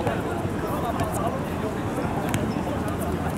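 A football is kicked on a hard court outdoors.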